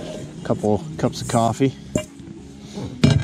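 A metal pan clanks as it is handled.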